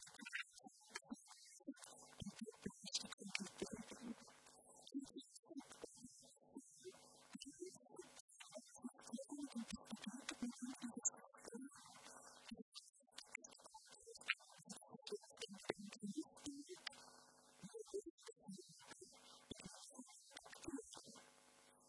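A woman speaks calmly through a handheld microphone, giving a talk.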